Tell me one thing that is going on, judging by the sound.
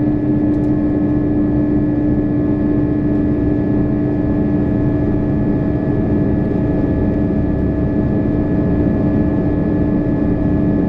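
A train hums and rumbles steadily along the track.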